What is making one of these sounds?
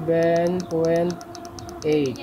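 An electronic controller beeps as a button is pressed.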